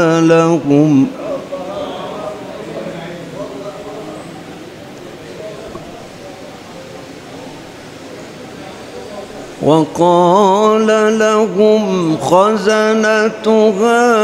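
An elderly man sings loudly into a microphone in long, wavering held notes.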